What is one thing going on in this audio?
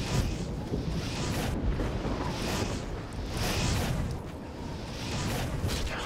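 A sword whooshes through the air in quick swings.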